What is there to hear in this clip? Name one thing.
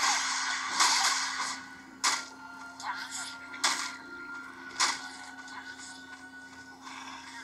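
Fighting sounds and sharp hits from a game play through a small phone speaker.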